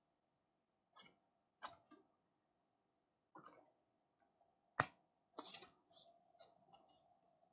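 Trading cards rustle and tap as they are handled.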